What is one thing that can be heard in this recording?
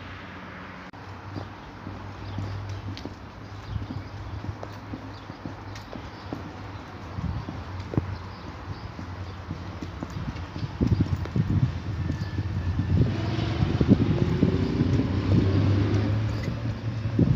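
Footsteps tap on a paved platform.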